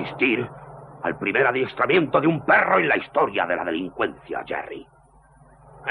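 A man speaks with animation up close.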